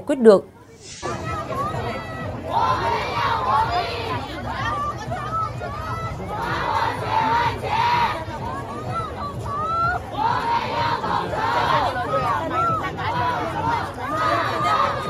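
A large crowd outdoors chants and shouts together.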